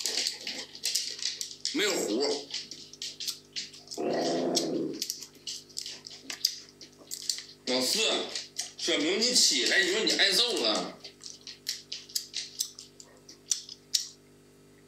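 A young man chews and smacks his lips loudly.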